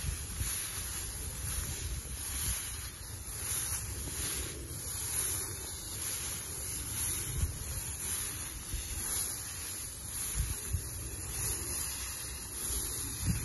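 Footsteps swish and rustle through tall grass.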